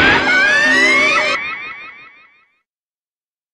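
A video game blast effect bursts and rings out, then fades.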